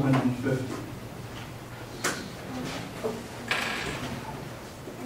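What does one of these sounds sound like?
A man lectures in a large room, heard from a distance.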